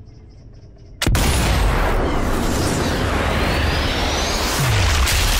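A bullet whooshes through the air in slow motion.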